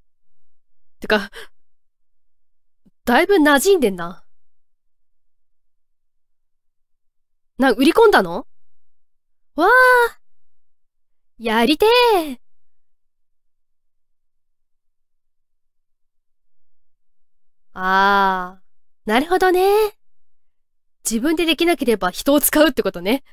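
A young woman talks with animation in short bursts through a microphone.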